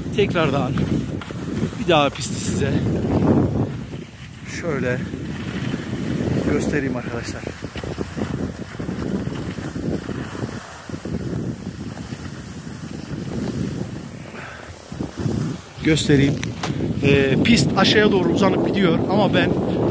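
Strong wind buffets and roars across an open slope.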